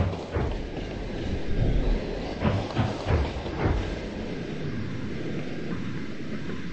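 Steam hisses from an engine's funnel.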